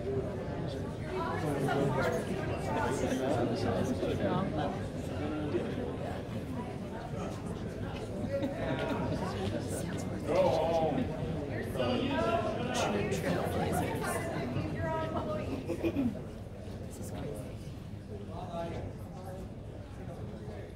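A woman speaks to the crowd through a microphone and loudspeakers.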